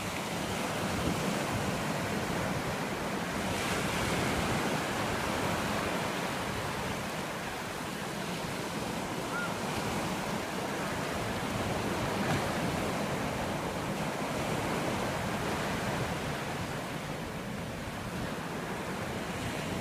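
Small waves wash and hiss steadily up the shore.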